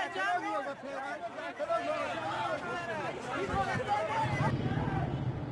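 A crowd of men shouts excitedly outdoors.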